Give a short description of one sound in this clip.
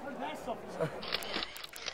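A young woman exclaims excitedly close by.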